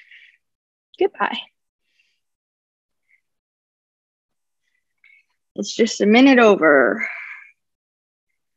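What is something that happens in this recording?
A young woman speaks calmly through a computer microphone, in short bursts.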